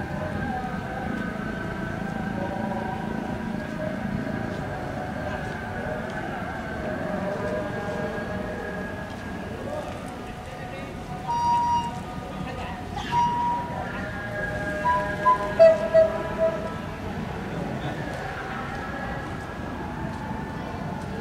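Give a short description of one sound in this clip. A car engine hums steadily as the vehicle drives along a road.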